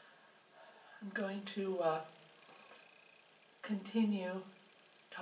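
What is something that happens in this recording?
A woman speaks calmly into a microphone in a room with a slight echo.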